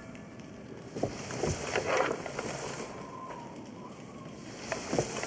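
Soft footsteps shuffle over dirt and brush through dry grass.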